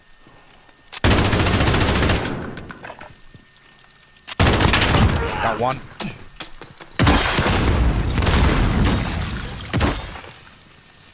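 Machine gun fire rattles in loud rapid bursts.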